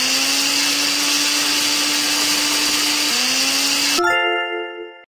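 A blender whirs steadily.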